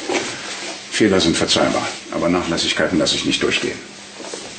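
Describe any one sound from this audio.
An older man speaks firmly.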